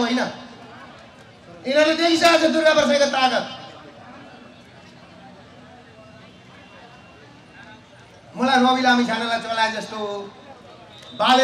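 A middle-aged man speaks loudly and with animation into a microphone, heard through loudspeakers outdoors.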